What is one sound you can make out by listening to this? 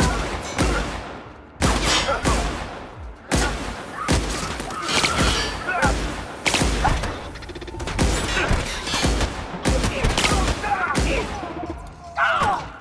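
A gun fires heavy shots again and again.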